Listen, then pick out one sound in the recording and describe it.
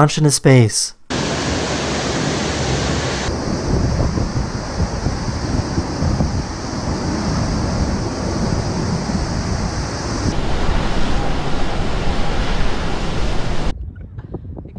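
Water gushes out with a loud, steady roar.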